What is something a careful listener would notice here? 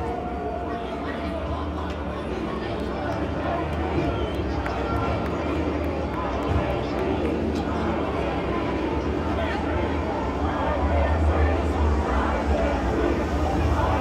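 A heavy metal band plays loudly through large loudspeakers outdoors.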